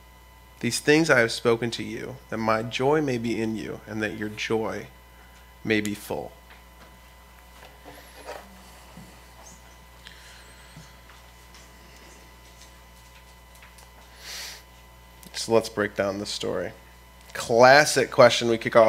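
A young man speaks calmly into a microphone, reading aloud with pauses.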